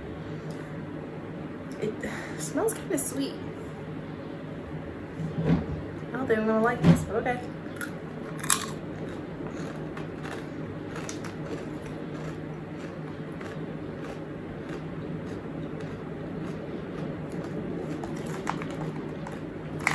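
A young woman crunches and chews a snack.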